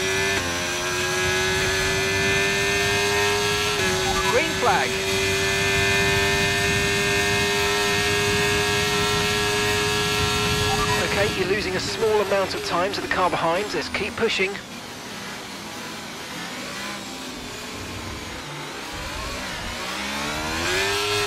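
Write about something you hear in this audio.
A racing car engine whines at high revs.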